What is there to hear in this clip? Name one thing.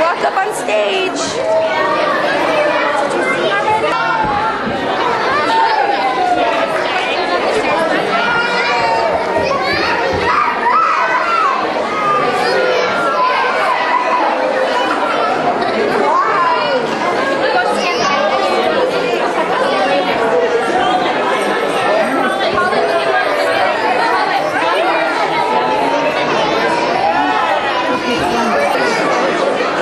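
A crowd of young children chatter and call out close by.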